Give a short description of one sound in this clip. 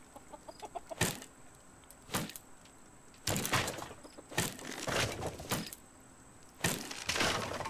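A hammer knocks against wood several times.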